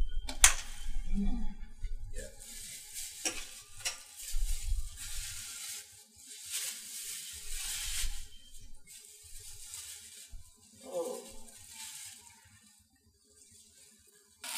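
A plastic bag crinkles and rustles in hands.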